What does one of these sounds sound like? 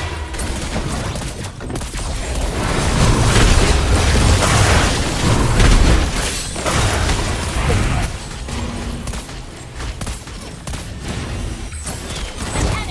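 Game spell effects whoosh and explode in quick bursts.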